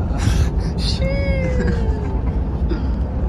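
A young man giggles close by, trying to stifle his laughter.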